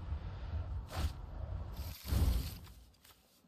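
A short whooshing game sound effect plays as a card is played.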